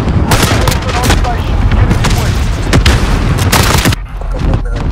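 Rapid gunshots bang loudly in bursts.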